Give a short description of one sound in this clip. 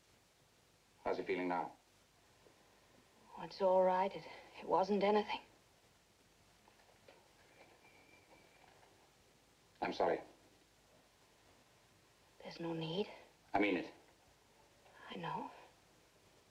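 A woman speaks in short, calm phrases nearby.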